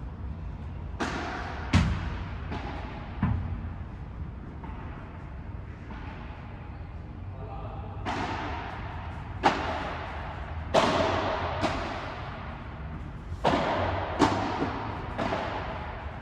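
Padel rackets strike a ball with sharp pops that echo through a large hall.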